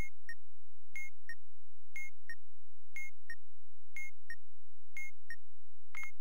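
A bomb timer beeps in a steady double beat, once each second.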